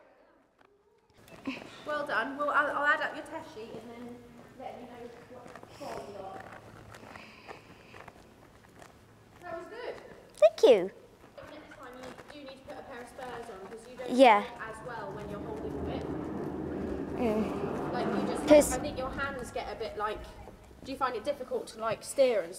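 A pony's hooves trot on soft sand.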